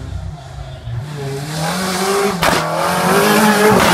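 A rally car engine revs hard as the car accelerates closer.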